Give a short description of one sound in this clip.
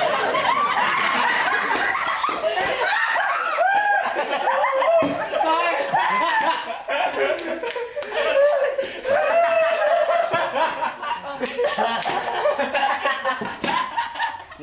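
Young men laugh loudly close by.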